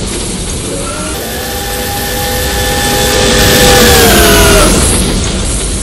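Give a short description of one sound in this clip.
A steam locomotive whistle blows a long, steady chord.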